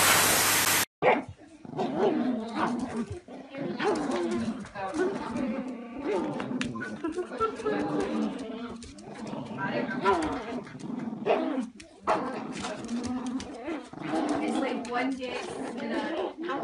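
Small dogs growl and snarl as they play-fight.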